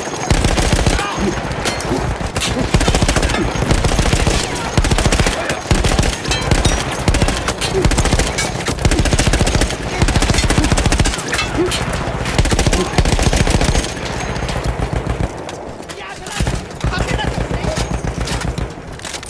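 A heavy machine gun fires in long, rapid bursts close by.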